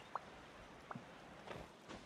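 Wind rushes softly past during a glide.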